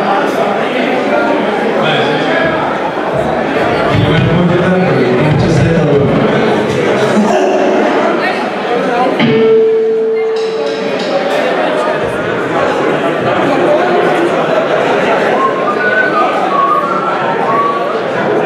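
A punk rock band plays live with electric guitars and bass in an echoing hall.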